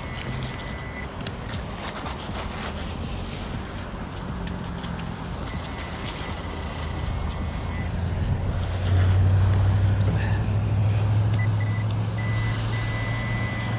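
A metal tool scrapes and clicks through gritty shell debris.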